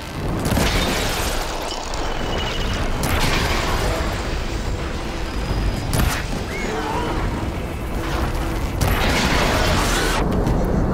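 Bursts and blasts crash during a fight.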